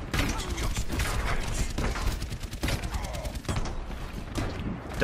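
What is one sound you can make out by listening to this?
Video game weapons fire and explosions pop rapidly.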